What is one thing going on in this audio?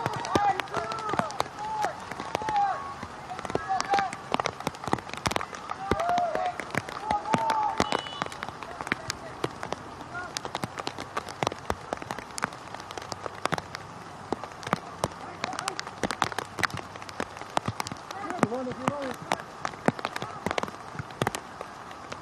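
Distant players call out across an open field.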